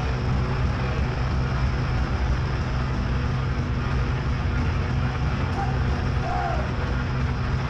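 A rock band plays loudly with distorted electric guitars.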